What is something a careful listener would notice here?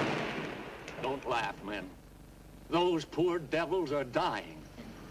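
A middle-aged man speaks loudly and grandly, as if addressing a crowd.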